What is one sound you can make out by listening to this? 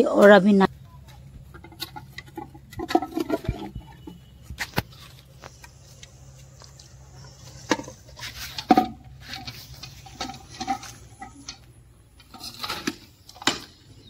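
A metal lid clicks and knocks against a canister.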